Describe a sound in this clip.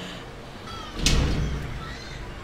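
A heavy thud sounds as something lands.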